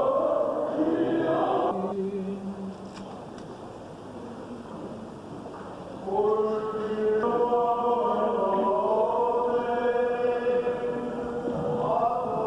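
A group of men chant together in a slow, sustained melody, heard through an old, hissy recording.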